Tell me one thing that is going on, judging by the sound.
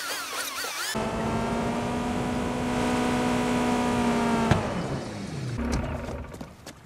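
Car tyres screech as the car slides to a stop.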